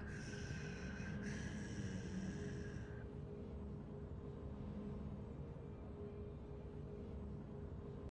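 A low game soundtrack hums steadily.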